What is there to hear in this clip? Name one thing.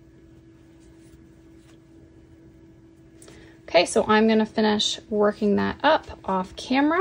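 Yarn rustles softly as a crochet hook works through it.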